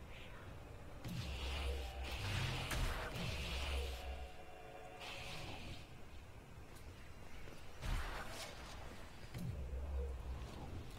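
A magic spell bursts with a deep rumble and a bright whoosh.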